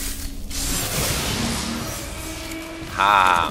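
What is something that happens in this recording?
Electric energy crackles and hisses loudly.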